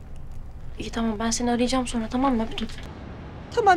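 A young woman speaks anxiously on a phone.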